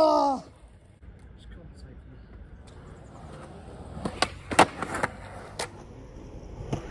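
Skateboard wheels roll over concrete.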